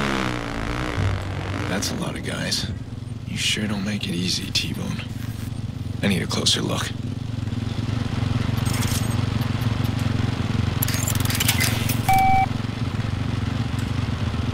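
A motorcycle engine idles with a low steady rumble.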